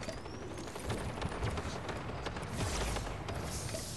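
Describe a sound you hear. A pickaxe swings with a whoosh in a video game.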